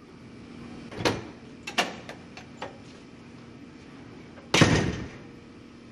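A glass door thumps and rattles as it opens and shuts.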